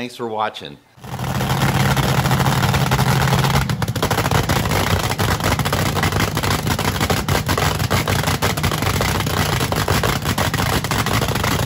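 A dragster engine roars loudly.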